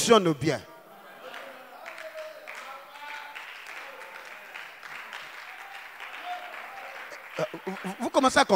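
A crowd murmurs and responds.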